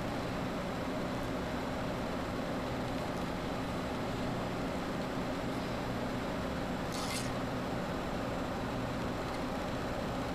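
Tiny glass beads click softly against each other.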